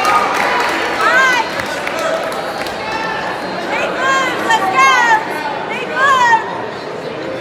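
Spectators nearby shout loudly in high voices.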